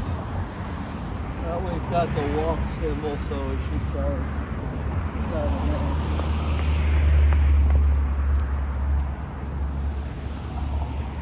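Footsteps walk along a paved sidewalk outdoors.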